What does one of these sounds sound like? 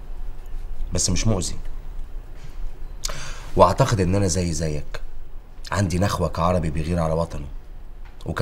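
A middle-aged man speaks calmly and seriously nearby.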